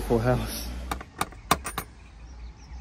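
A hand knocks on a wooden door.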